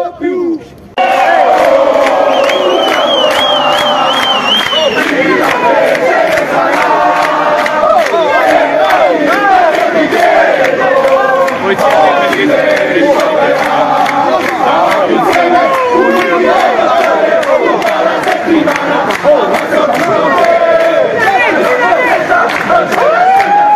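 A crowd of men shouts loudly outdoors.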